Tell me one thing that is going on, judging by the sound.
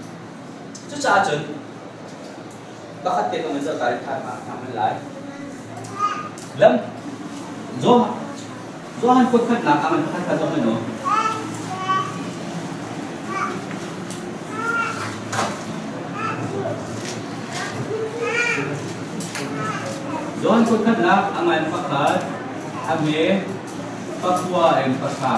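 A man speaks calmly, in a room with some echo.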